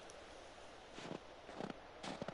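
Footsteps crunch slowly through snow.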